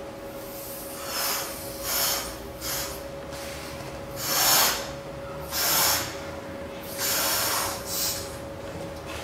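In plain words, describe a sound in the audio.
A young woman blows up a balloon in long breaths.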